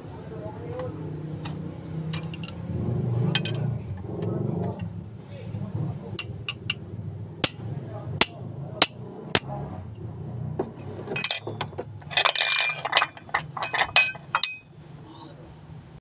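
Metal tools click and clink against engine parts.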